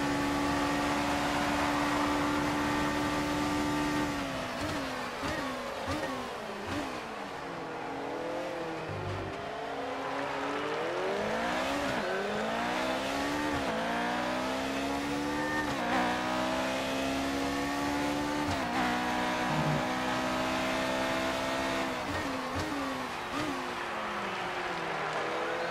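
A racing car engine roars steadily, then rises and falls in pitch as it shifts gears and slows for corners.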